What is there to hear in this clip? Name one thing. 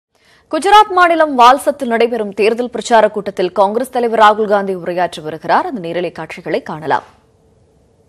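A woman reads out calmly and clearly through a microphone.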